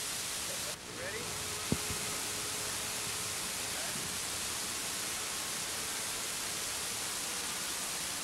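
A model helicopter's engine whines far off overhead.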